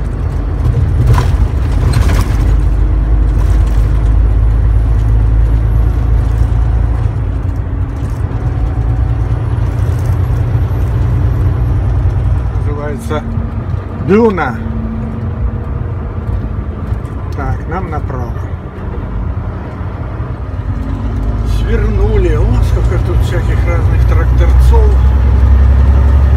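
A car engine hums with a steady low road rumble as the car drives along.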